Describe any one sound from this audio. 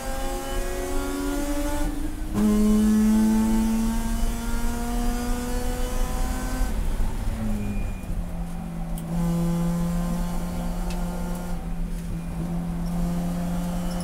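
A race car engine roars loudly from inside the cabin, revving up through the gears and dropping in pitch at each shift.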